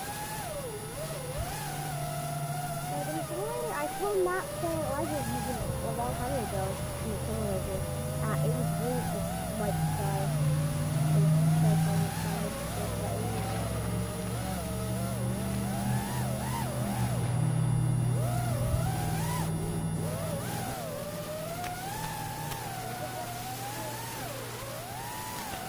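A model airplane engine drones steadily close by.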